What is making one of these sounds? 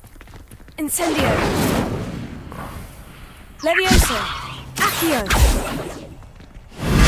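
A magic spell crackles and shimmers.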